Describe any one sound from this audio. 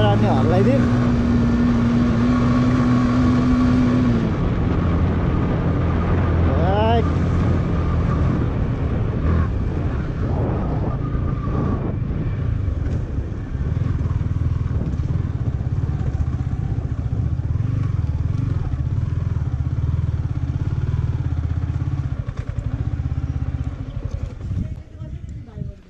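Tyres rumble over a rough dirt road.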